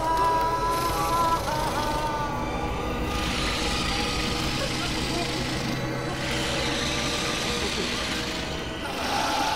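A giant spider's legs skitter and scrape over rocky ground.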